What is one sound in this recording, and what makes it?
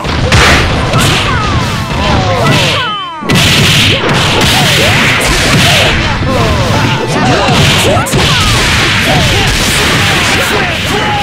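Video game punches and blasts crash rapidly during a fight.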